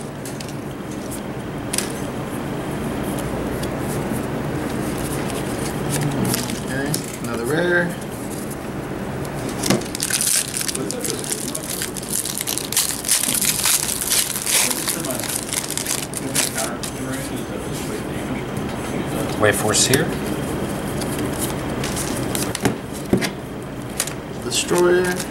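Playing cards are shuffled and flicked in hands.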